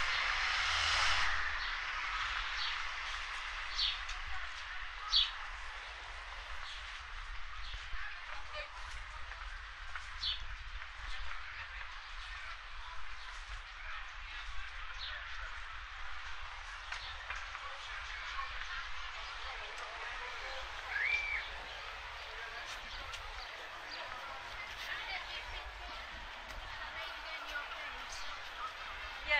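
A crowd of men and women chat faintly at a distance outdoors.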